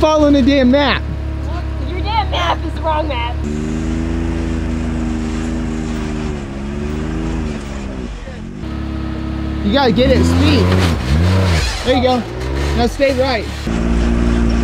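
An off-road vehicle's engine revs up and down sharply.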